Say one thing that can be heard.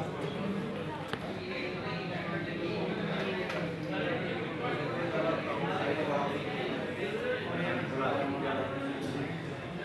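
Many people chatter in a large echoing room.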